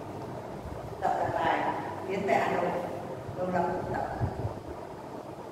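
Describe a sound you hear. A woman speaks in a large, echoing hall.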